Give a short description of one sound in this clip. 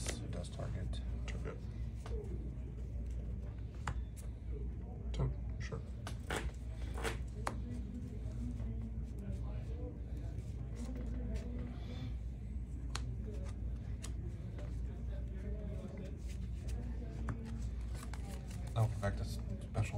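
Playing cards shuffle and slide against each other in hands.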